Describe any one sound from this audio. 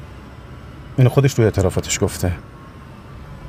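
A man speaks in a low, tense voice nearby.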